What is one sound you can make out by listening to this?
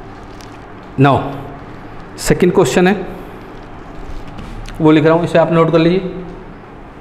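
A man speaks calmly in short phrases into a close microphone.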